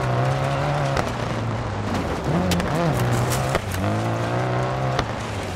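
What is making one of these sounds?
Tyres skid and spray over loose gravel.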